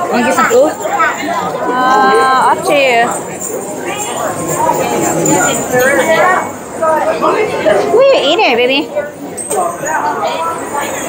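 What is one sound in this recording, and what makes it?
Children and adults chatter and call out in a large echoing hall.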